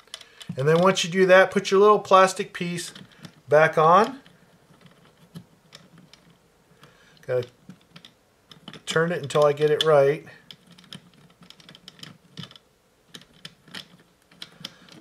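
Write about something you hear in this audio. Small plastic parts click and rattle as they are handled.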